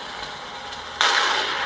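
A smoke grenade bursts with a hiss.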